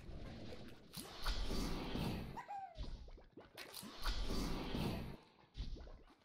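A loud magical whoosh swells and fades twice.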